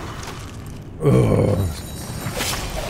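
A loud blast booms and crackles.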